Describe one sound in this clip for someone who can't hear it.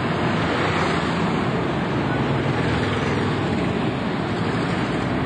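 Traffic rumbles past on a town street.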